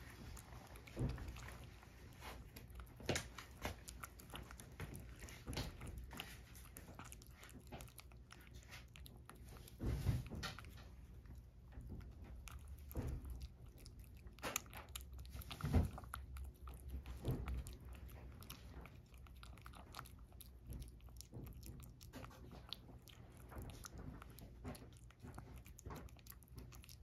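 A cat laps liquid from a bowl with quick, wet licks close by.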